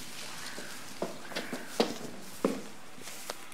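Footsteps knock on wooden steps.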